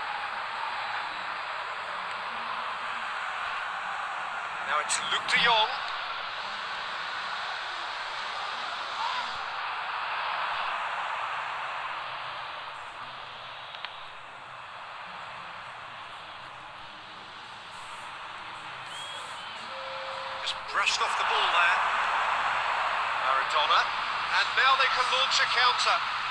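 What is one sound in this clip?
A stadium crowd roars steadily, swelling loudly near the end.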